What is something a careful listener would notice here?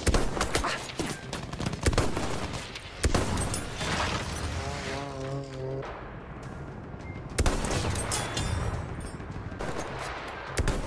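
Gunfire cracks in quick shots.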